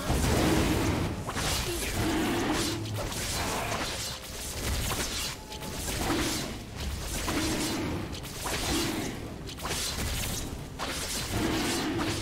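Magic attacks whoosh and crackle in a fast fight.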